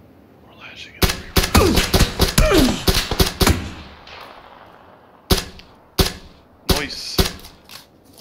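A rifle fires in rapid bursts of loud, sharp shots.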